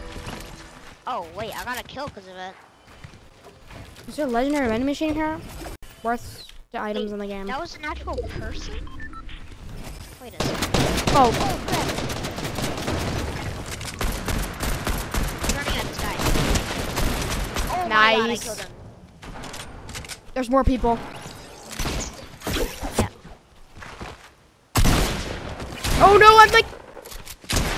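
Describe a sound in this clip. A young boy talks with animation into a microphone.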